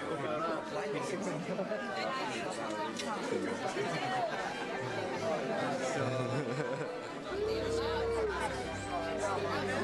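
A crowd of people chatter loudly all around.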